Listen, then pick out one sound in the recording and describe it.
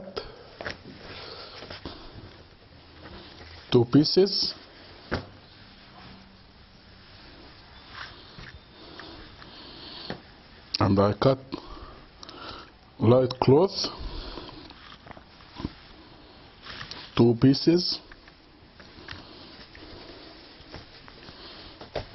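Soft fabric rustles and flaps as hands lift and lay it down.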